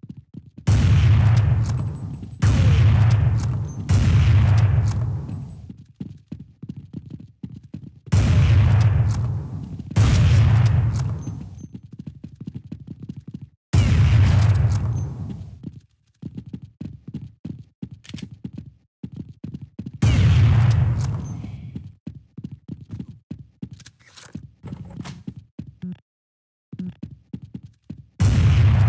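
A sniper rifle fires loud booming shots that ring out and fade.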